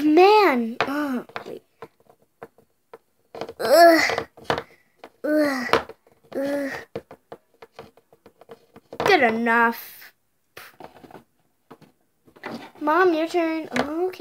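Small plastic toy figures tap and knock on a hard surface.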